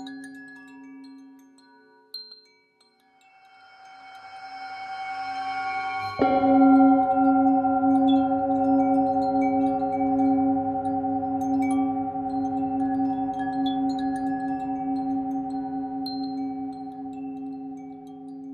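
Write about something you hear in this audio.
A metal singing bowl hums with a steady, ringing tone as a mallet circles its rim.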